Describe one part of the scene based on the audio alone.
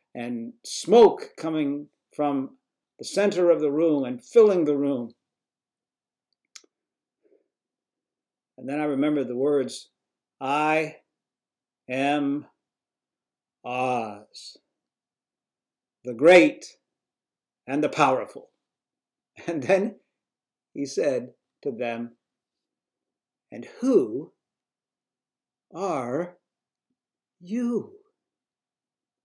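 An elderly man talks calmly and with feeling into a microphone, with pauses.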